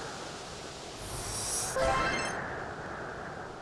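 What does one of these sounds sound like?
A heavy boulder scrapes as it is pushed.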